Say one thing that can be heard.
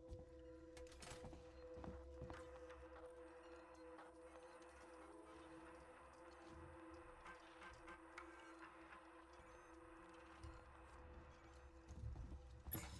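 A computer terminal beeps and clicks as keys are pressed.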